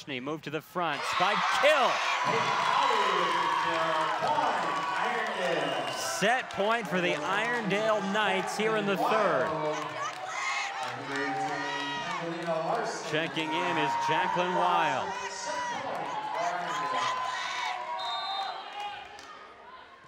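A crowd cheers and claps loudly in a large echoing gym.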